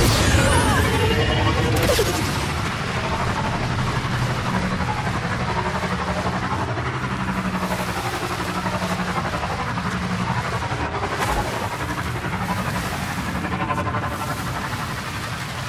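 Water splashes under tyres.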